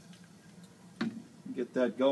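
A glass flask clinks as it is set down on a hard surface.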